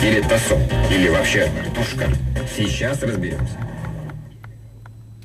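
Music plays from a car radio, then quickly goes quiet.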